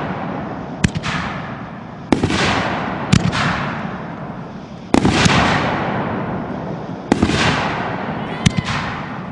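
Fireworks crackle and hiss as the sparks fall and fade.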